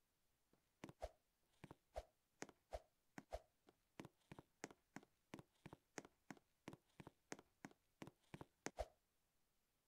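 Soft thuds sound from short jumps, several times.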